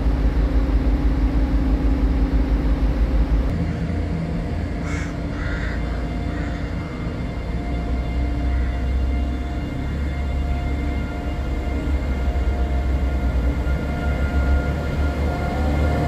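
A diesel locomotive engine rumbles deeply nearby.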